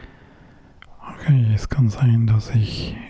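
A man speaks in a deep, calm voice, close by.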